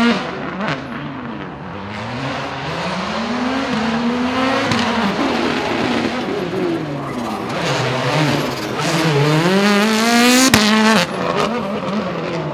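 A turbocharged rally car revs hard through gear changes as it races past.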